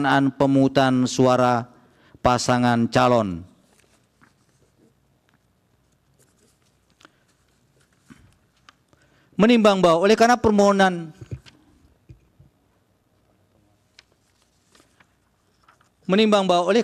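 A man reads out formally into a microphone, with pauses between phrases.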